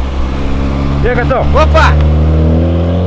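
Car exhausts pop and crackle.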